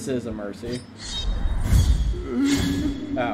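A heavy blade strikes with a deep impact.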